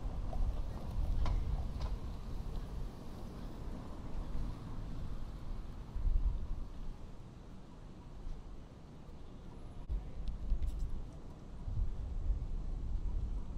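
Cars drive past on a city street.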